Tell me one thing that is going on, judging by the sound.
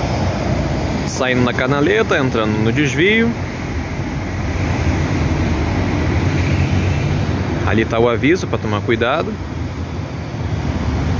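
A bus engine rumbles as the bus pulls away down the street.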